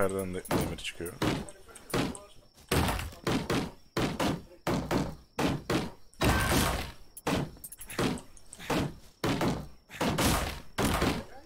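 Weapons strike in quick, repeated blows.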